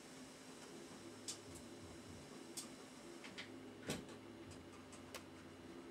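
A whisk taps and swishes in a pan of batter.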